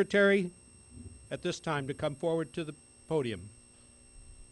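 A man speaks calmly through a microphone, over loudspeakers outdoors.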